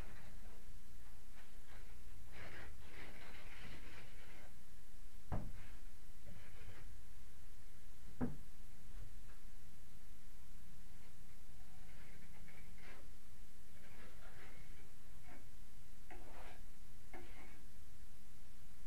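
A hand tool scrapes against a wall in short strokes.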